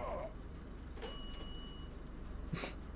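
A short chime rings as a coin is picked up.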